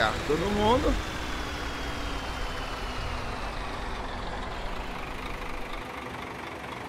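A bus engine rumbles low as the bus slowly manoeuvres.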